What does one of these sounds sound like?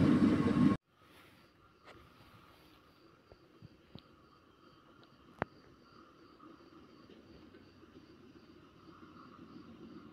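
A train approaches from far off with a low rumble.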